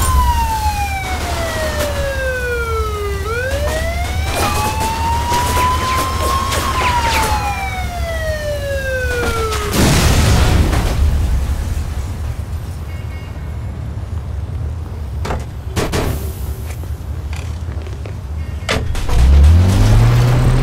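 Fire crackles and roars on a burning car.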